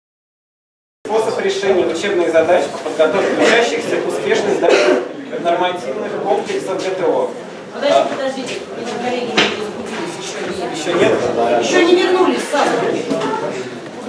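A young man speaks loudly and briskly in an echoing hall.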